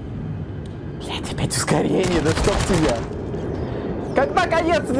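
A man exclaims loudly through a microphone.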